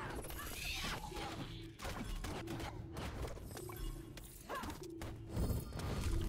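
Blades slash and strike in a fast fight.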